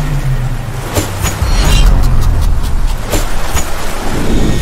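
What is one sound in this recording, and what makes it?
Blades clash with sharp metallic rings.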